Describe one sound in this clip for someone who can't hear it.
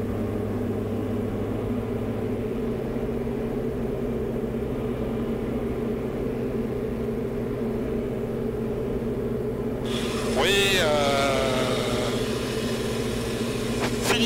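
A light aircraft engine drones steadily in the cabin.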